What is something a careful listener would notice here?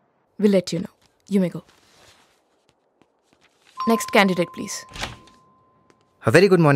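A man speaks clearly and firmly, close by.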